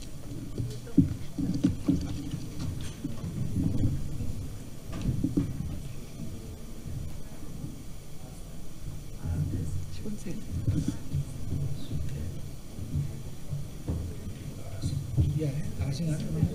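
A chair scrapes and knocks as people sit down at a table.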